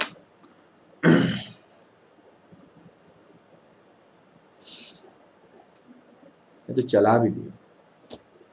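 A young man speaks into a close microphone in short bursts, with long pauses.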